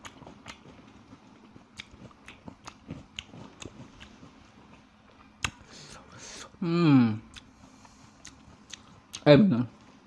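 A young man chews food wetly and smacks his lips close to a microphone.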